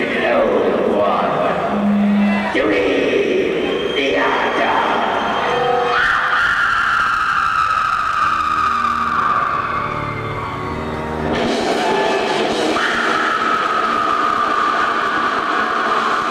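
A band plays loud distorted music through loudspeakers.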